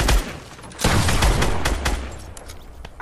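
Loud gunshots crack in quick bursts.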